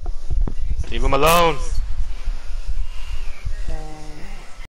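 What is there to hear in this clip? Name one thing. A cartoonish villager makes nasal humming grunts.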